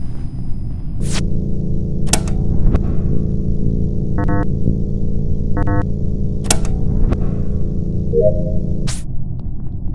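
An electrical buzz hums steadily, then cuts off.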